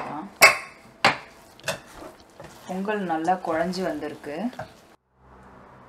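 A wooden spoon scrapes and stirs thick cooked rice in a pot.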